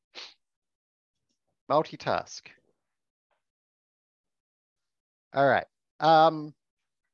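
A man speaks calmly through an online call, in short bursts.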